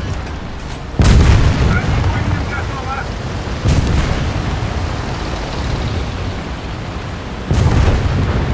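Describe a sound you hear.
Cannon shots boom with sudden loud blasts.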